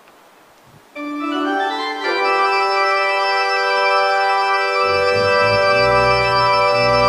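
A choir sings together in a large echoing hall.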